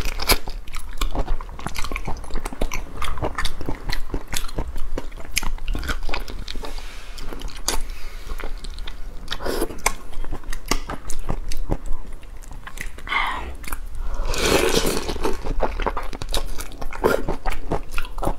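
A young woman chews and slurps food close to a microphone.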